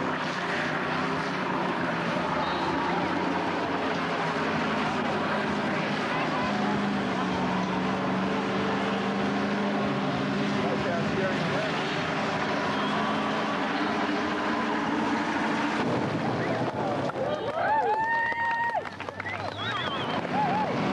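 Car tyres squeal and screech on the pavement.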